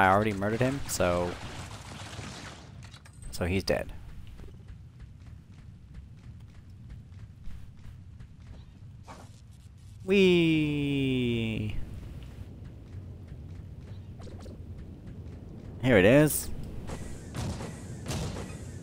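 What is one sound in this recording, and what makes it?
A blaster fires sharp energy shots.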